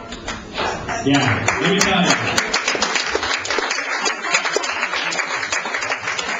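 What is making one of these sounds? People clap their hands in a quick, steady rhythm.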